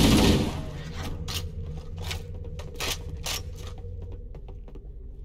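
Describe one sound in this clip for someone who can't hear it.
Heavy footsteps clank on a metal floor.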